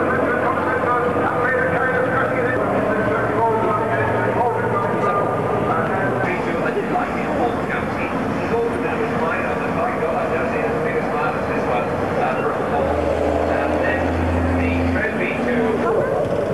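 Diesel racing trucks roar past on a track.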